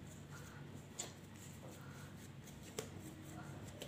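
Dough taps lightly against a clay dish.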